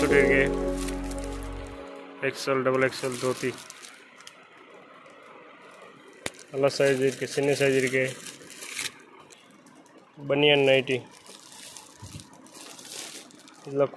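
Plastic wrapping crinkles as hands handle packaged garments.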